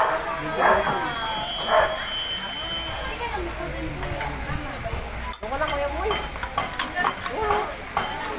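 Several men and women chat nearby, indoors.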